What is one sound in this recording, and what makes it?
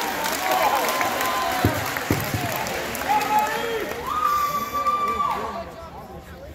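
People in a crowd let out high whoops and calls.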